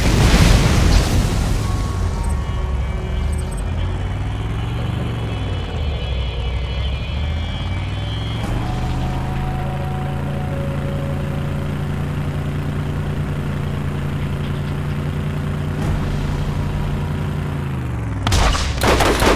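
A vehicle engine roars and revs up and down as it drives.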